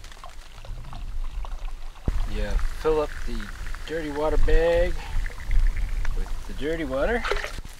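Water pours from a cup into a bag.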